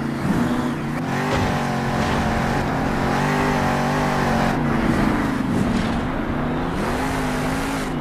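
A monster truck engine roars and revs, rising and falling in pitch.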